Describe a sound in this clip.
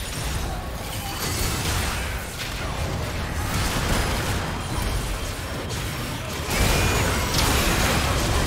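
Magic blasts and clashing weapons crackle and boom in a busy battle.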